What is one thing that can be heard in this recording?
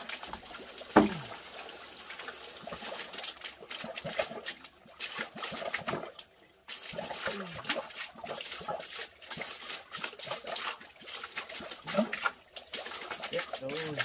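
A fishing net rustles and swishes as it is handled.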